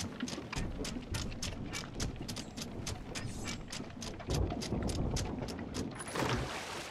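Waves wash against a ship's hull.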